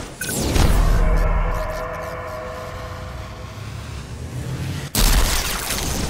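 An electric shield crackles and hums.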